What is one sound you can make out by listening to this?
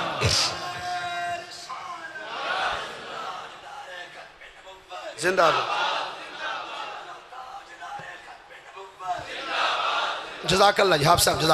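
A man speaks passionately into a microphone over loudspeakers in an echoing hall.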